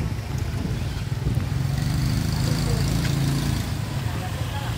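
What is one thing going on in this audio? A motorbike engine hums close by.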